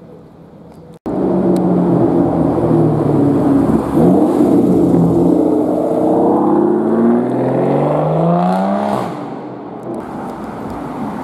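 A sports car engine roars loudly close by as the car drives past.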